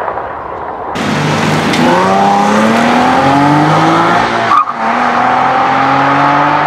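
A car engine revs hard and climbs in pitch as the car accelerates through the gears.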